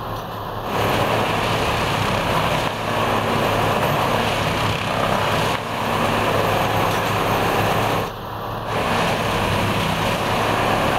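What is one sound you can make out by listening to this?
A track machine's tamping tools hammer and squeeze the rail ballast in loud repeated bursts.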